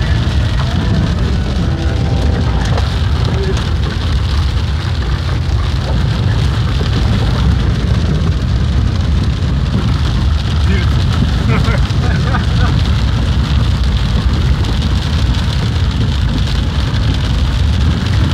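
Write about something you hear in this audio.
Rain patters on a windshield.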